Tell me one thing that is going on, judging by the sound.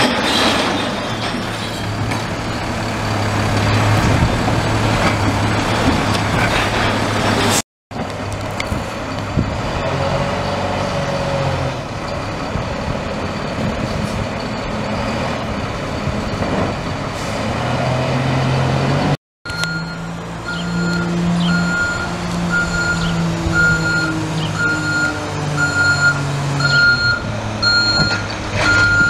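A garbage truck engine rumbles nearby.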